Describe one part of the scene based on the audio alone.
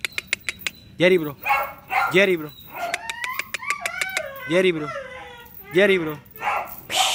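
A pit bull barks in short, deep bursts.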